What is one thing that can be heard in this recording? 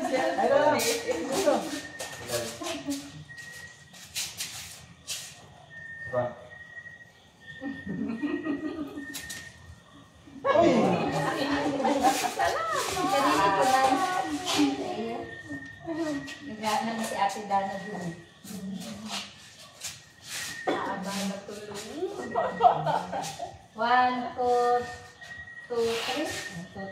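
Several men and women talk and laugh nearby.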